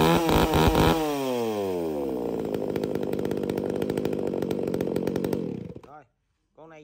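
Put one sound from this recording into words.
A chainsaw engine winds down, idles briefly and cuts out.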